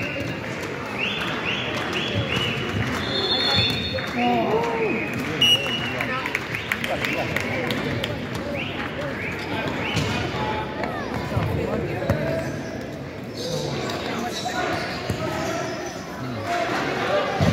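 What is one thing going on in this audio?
A ball is kicked with thuds on a hard floor.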